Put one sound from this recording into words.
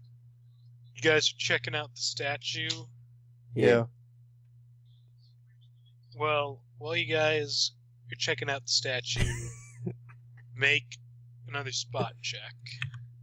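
Young men talk with animation over an online call.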